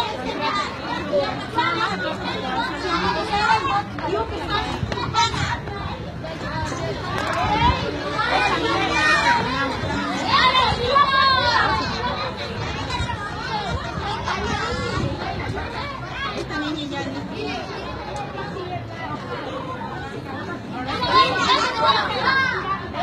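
A woman talks with animation close by.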